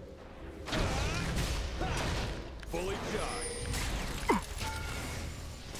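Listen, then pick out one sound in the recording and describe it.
Game characters clash with sharp hits.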